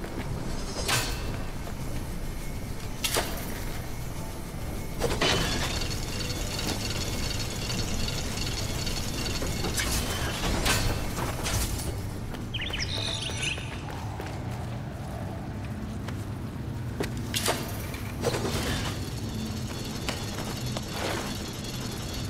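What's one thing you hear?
Sharp swooshes and clanging hits ring out as a blade swings.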